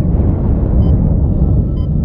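A fiery blast bursts with a loud bang.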